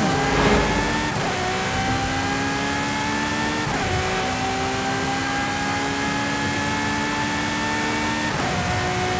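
Tyres hum on the road at high speed.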